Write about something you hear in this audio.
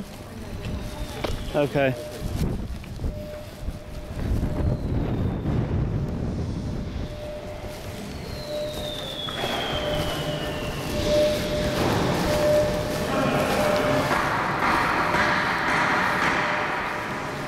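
People murmur in a large echoing hall.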